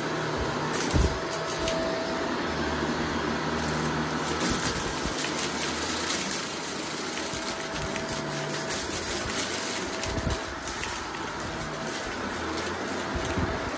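A vacuum cleaner hums steadily as it runs over carpet.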